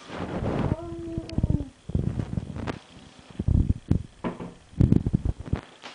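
A cupboard door bangs open and shut.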